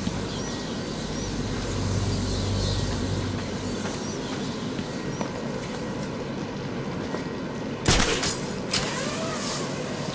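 Footsteps splash on wet ground.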